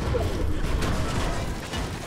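A pickaxe strikes a wall with sharp hits.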